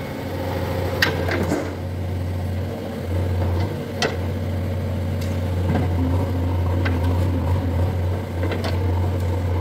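A digger's bucket scrapes and clanks in dry earth.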